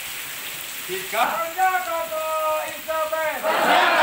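A man calls out commands loudly.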